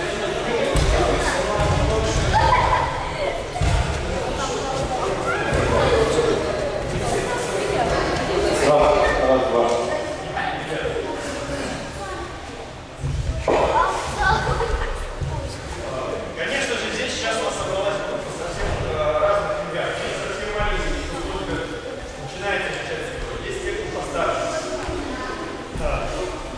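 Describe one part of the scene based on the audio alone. Many children chatter and call out in a large echoing hall.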